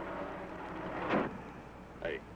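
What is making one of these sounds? A truck door slams shut.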